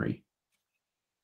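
A man speaks briefly and calmly over an online call.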